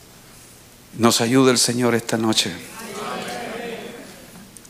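A middle-aged man speaks slowly and calmly into a microphone, with pauses.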